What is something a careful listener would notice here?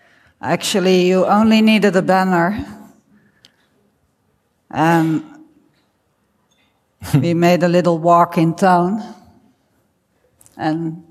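A middle-aged woman speaks calmly through a microphone, in pauses.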